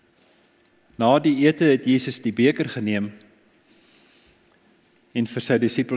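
An elderly man speaks calmly through a microphone in a reverberant hall.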